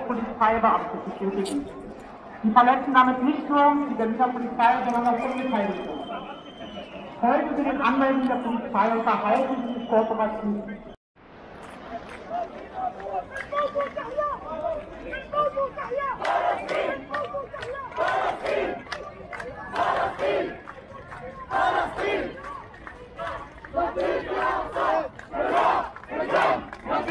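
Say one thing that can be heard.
A crowd of men and women chants loudly in rhythm outdoors.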